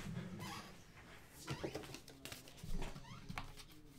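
Paper wrapping crinkles as hands open a pack of cards.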